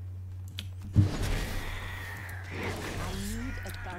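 A weapon strikes a creature with a thud.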